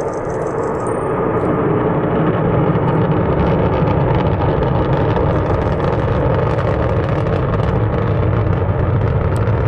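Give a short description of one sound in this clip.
A distant rocket engine roars and rumbles steadily, growing slightly louder.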